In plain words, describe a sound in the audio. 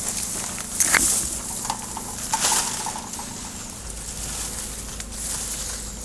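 Cut branches rustle against a plastic tarp.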